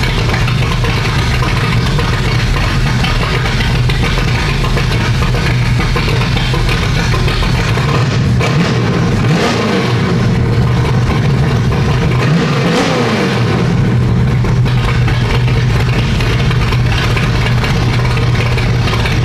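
A car engine idles with a loud, rough rumble.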